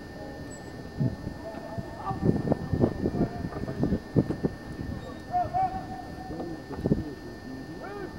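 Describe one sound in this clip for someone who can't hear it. Wooden ramrods thump and knock inside a cannon barrel.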